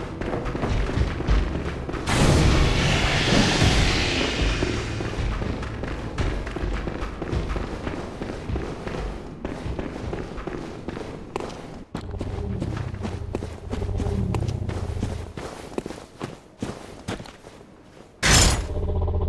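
Footsteps crunch steadily on stone and gravel.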